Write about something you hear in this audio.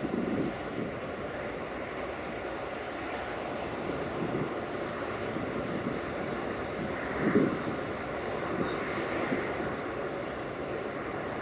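A freight train rumbles slowly along the tracks, wheels clattering and squealing.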